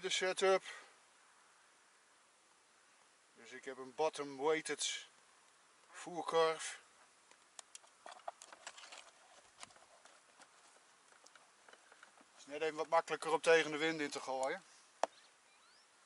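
A man talks calmly close by, in short bursts.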